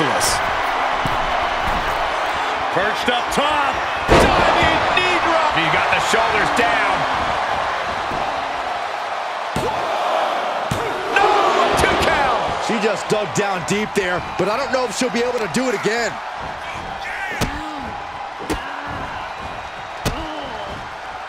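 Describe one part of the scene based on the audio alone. A large crowd roars and cheers throughout in a big arena.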